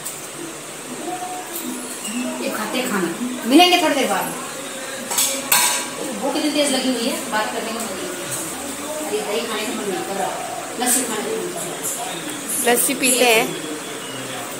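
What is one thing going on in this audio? A young woman talks close by, calmly.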